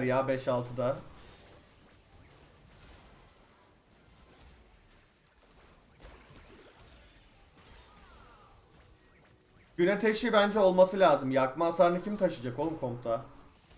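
Magic blasts and clashing blows sound faintly from a fight.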